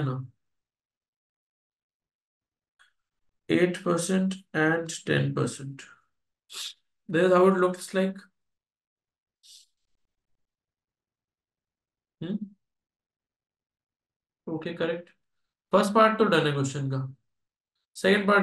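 A man speaks calmly into a close microphone, explaining with pauses.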